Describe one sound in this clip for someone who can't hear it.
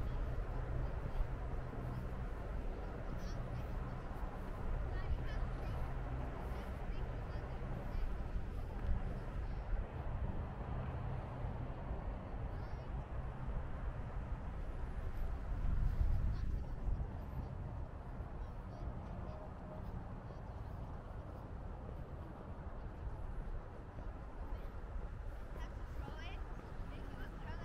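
Wind buffets the microphone outdoors with a low, steady rumble.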